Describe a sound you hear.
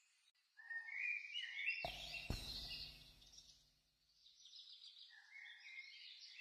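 A man sings softly close to a microphone.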